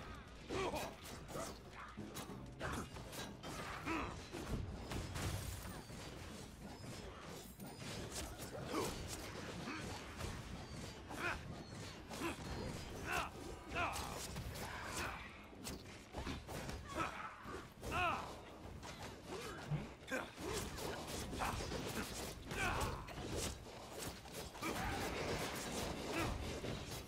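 Weapons clash and slash in quick, repeated hits.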